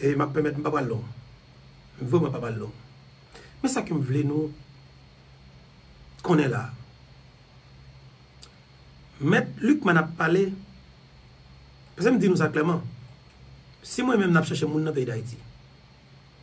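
A man speaks calmly into a close microphone in short phrases with pauses.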